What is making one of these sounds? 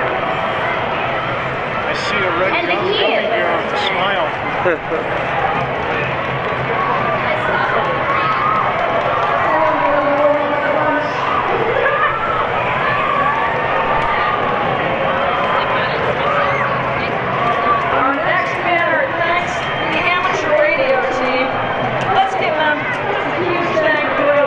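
Children shout and cheer excitedly in a crowd.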